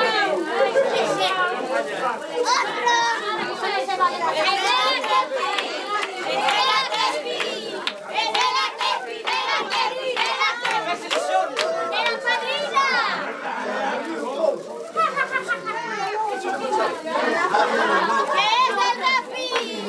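A crowd of women and children chatter and call out loudly all around.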